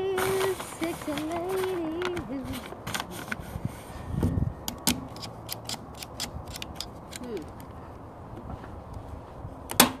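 A staple gun snaps sharply again and again.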